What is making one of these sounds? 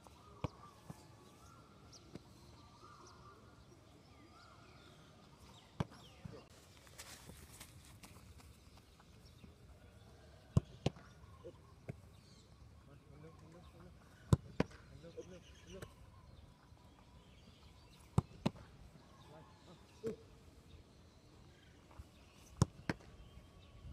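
A football is kicked hard, with sharp thuds, again and again outdoors.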